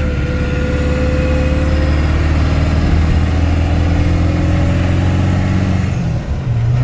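Wind rushes past the moving truck.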